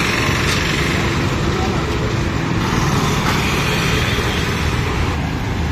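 Auto-rickshaw engines putter close by.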